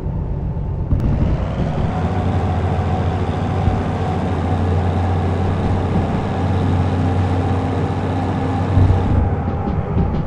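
A loud hiss of air rushes from a locomotive's brakes and then cuts off.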